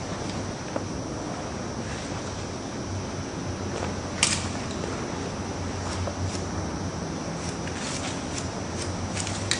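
Scissors snip through hair with short, crisp clicks.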